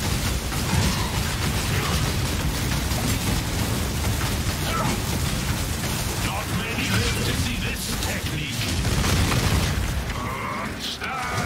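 Magic spells crackle and boom in rapid bursts.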